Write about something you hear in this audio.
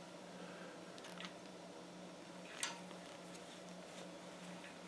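Small metal pieces clink together.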